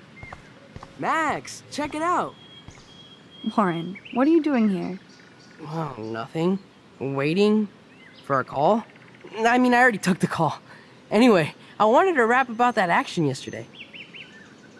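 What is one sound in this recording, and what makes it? A young woman asks a question in a calm, quiet voice.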